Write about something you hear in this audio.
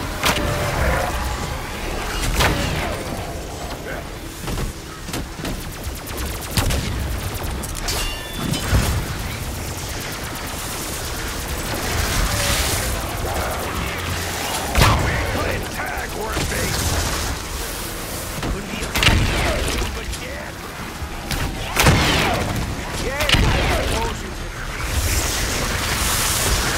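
Weapons fire energy blasts with crackling bursts.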